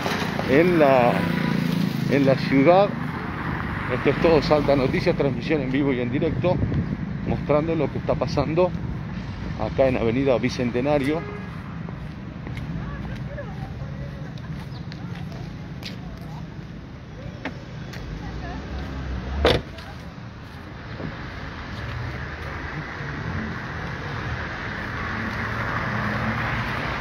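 Distant traffic rumbles steadily outdoors.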